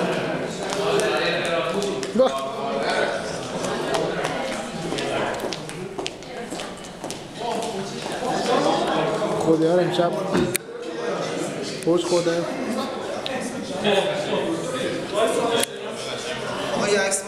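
Several adults talk and chatter nearby in a large echoing room.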